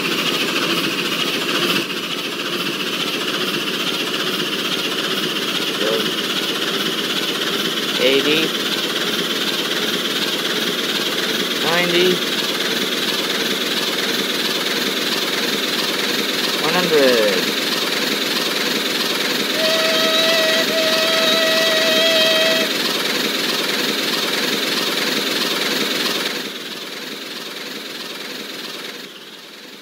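A steam locomotive rumbles and chuffs steadily as it speeds along the rails.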